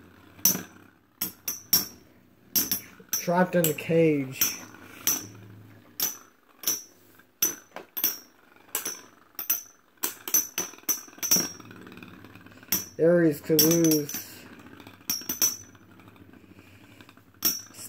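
Spinning tops clash together with sharp metallic clicks.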